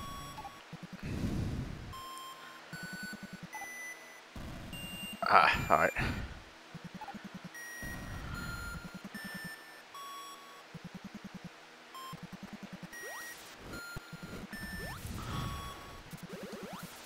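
Rapid electronic game footsteps patter.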